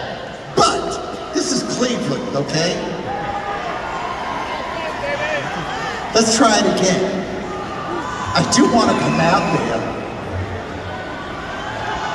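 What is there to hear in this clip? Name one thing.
An electric guitar plays loudly through loudspeakers in a large echoing hall.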